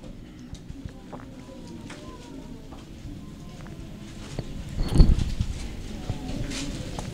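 A man speaks quietly into a microphone, as if reading out.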